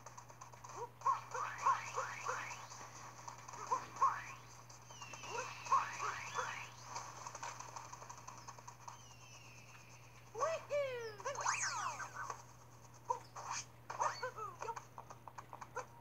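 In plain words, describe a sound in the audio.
Bright, chiming video game sound effects play in short bursts.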